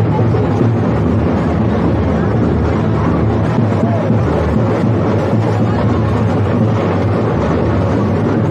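A dense crowd murmurs and chatters loudly outdoors.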